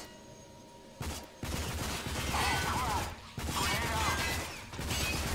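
A submachine gun fires loud, rapid bursts.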